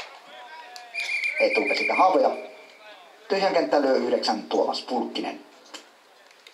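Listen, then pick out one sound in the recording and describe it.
Several young men shout and call out to each other outdoors.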